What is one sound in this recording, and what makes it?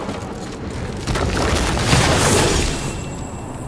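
A loud magical whoosh swells and fades.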